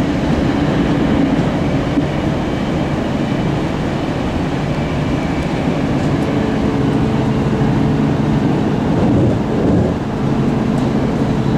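A train rumbles steadily along the track, heard from inside the carriage.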